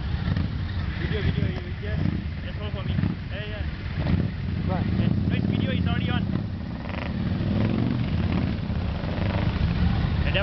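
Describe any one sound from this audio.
A man speaks cheerfully close up.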